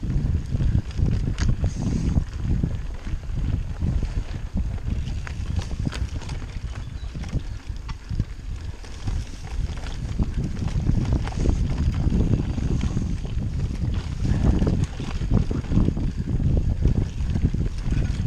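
A bicycle frame rattles and clatters over bumps.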